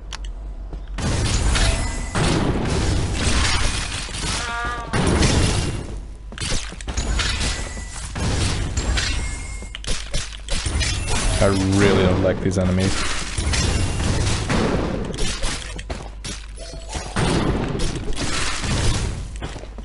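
Fast, loud fighting sound effects clash and burst.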